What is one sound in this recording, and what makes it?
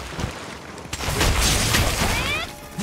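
A heavy weapon strikes a monster with a loud, crashing burst.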